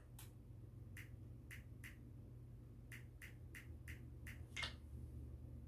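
Short soft electronic clicks sound from a television as a menu is browsed.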